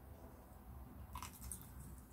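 A young man chews crunchy fried food close to a microphone.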